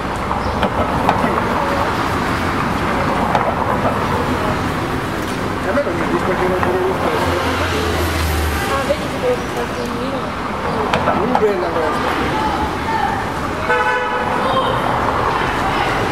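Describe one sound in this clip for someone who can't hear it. Sports car engines hum and rev as cars drive past one after another.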